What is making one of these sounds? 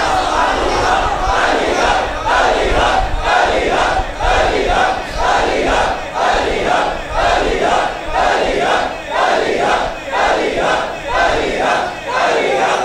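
A crowd of men beats their chests in a steady rhythm.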